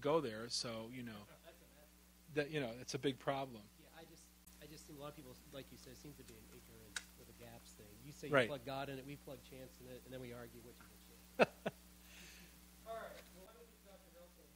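A man speaks into a microphone in a calm, lecturing voice over loudspeakers.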